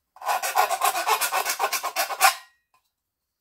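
A hand can opener grinds rapidly around the rim of a metal can.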